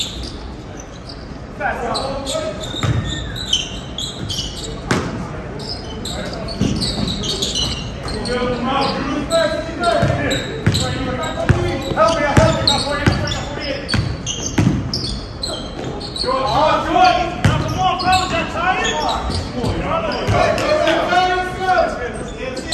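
A basketball bounces on a hard gym floor.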